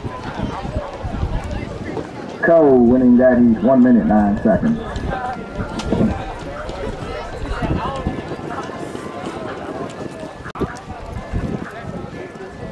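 Spectators chatter nearby outdoors.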